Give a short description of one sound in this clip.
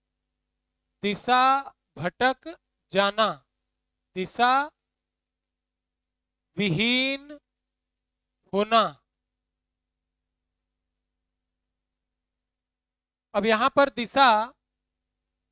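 A man speaks slowly and clearly, close by, pausing between phrases.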